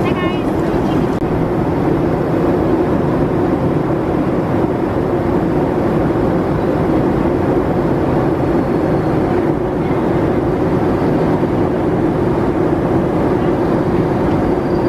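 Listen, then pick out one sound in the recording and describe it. Airliner engines drone with a steady, low roar.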